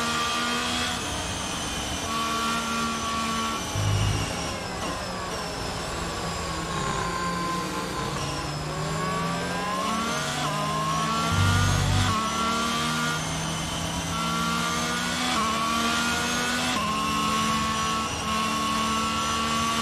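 A racing car engine screams at high revs, dropping in pitch at each gear change and rising again.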